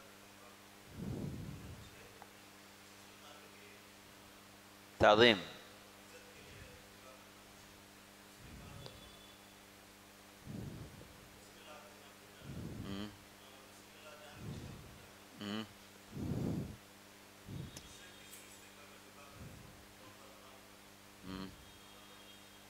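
A man speaks slowly through a microphone, with long pauses between phrases.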